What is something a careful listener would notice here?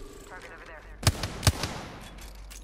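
A gun fires a short burst of loud shots.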